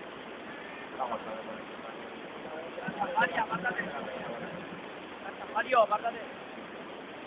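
A man speaks briefly into a microphone, heard from a distance.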